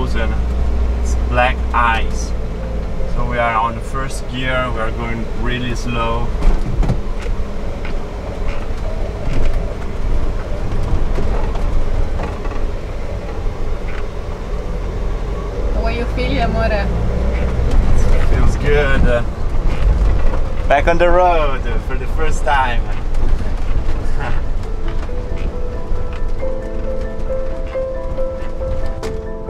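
A van engine rumbles steadily while driving.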